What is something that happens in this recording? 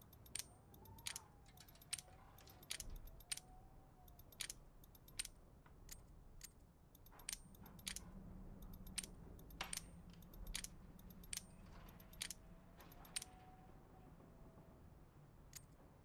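A combination lock's dials click as they are turned.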